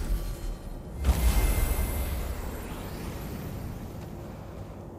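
A glowing magic seal hums and crackles.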